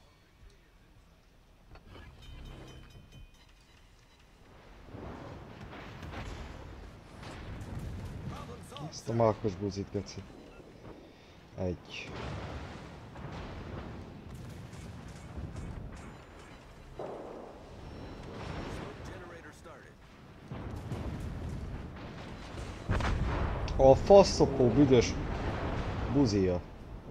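Heavy guns fire with deep booms.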